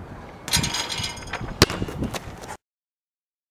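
A basketball drops through a hoop's net.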